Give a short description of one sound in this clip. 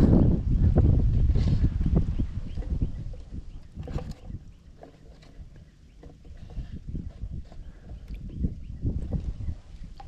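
A hand rummages about inside a plastic bucket.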